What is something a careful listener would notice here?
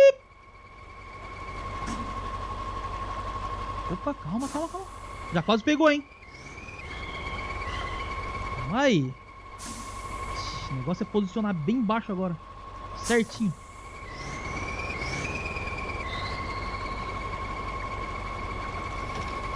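A heavy truck engine rumbles and revs.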